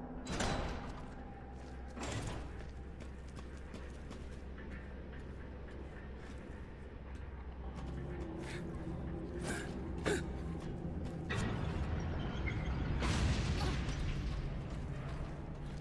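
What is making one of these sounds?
Heavy footsteps clang on a metal grating floor.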